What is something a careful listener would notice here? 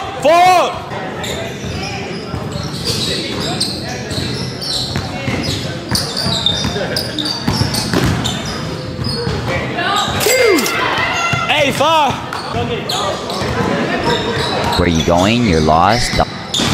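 A basketball bounces on a hard court with echoing thumps.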